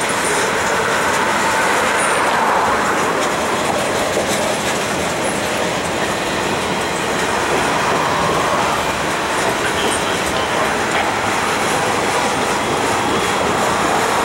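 A long freight train rumbles and clatters steadily along the tracks close by.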